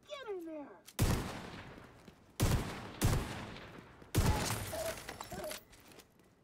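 Heavy shots boom one at a time.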